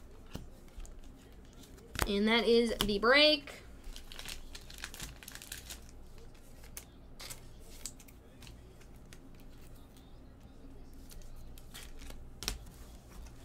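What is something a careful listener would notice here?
Trading cards rustle and slide softly between fingers.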